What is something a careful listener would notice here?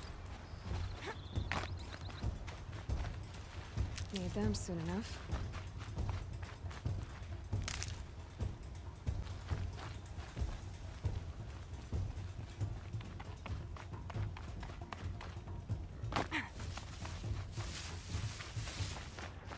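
Footsteps crunch on grass and rock as a game character runs.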